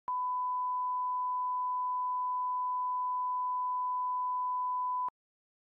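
A steady, high test tone sounds without a break, then cuts off.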